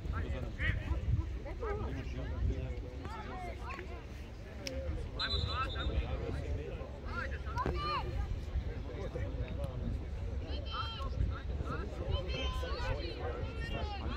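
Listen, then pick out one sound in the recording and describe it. Young players shout to each other across an open field at a distance.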